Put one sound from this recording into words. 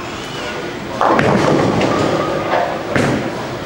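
Bowling pins crash and clatter in an echoing hall.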